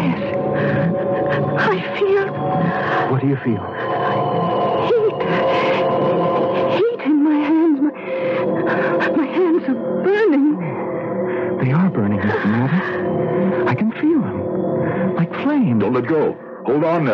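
Music plays through an old radio's loudspeaker.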